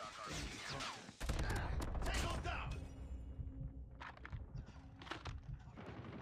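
Gunfire cracks in short bursts.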